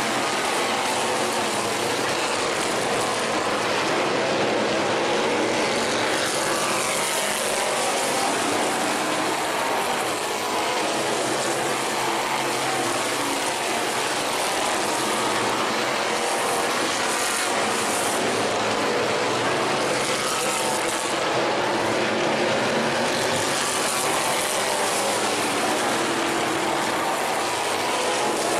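Race car engines roar loudly around a dirt track outdoors.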